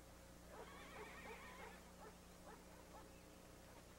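A tool scrapes against stretched hide.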